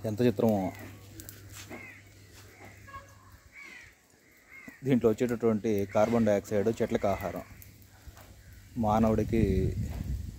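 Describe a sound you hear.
Dry leaves crackle as a small fire burns.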